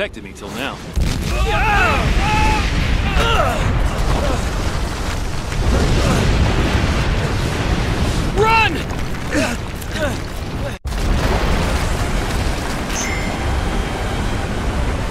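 A volcano erupts with a deep, steady roar.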